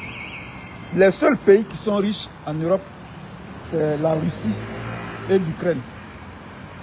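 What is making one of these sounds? A middle-aged man speaks calmly and close to the microphone, outdoors.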